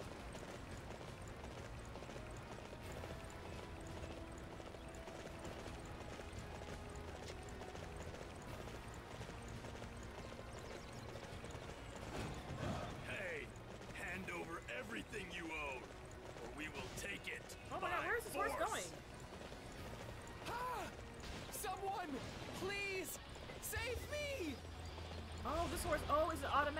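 A horse gallops with thudding hooves.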